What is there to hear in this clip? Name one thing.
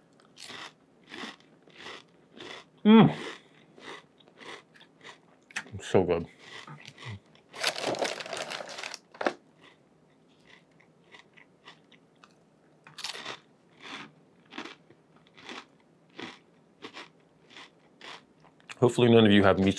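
A man chews and crunches food close by.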